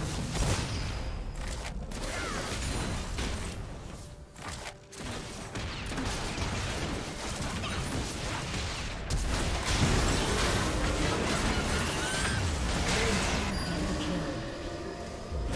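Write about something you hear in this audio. Magic blasts whoosh and crackle in a busy video game battle.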